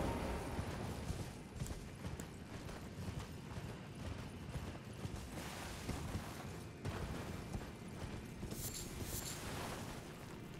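Hooves clop over rough, stony ground.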